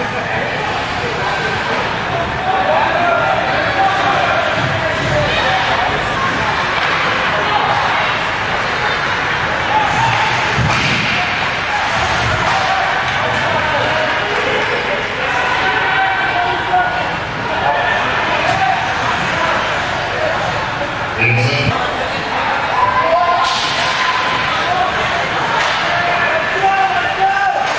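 A crowd of spectators chatters and calls out in a large echoing rink.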